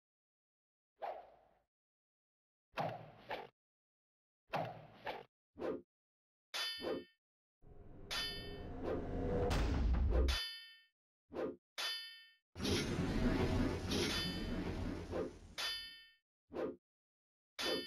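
Fantasy combat sound effects ring out in short bursts.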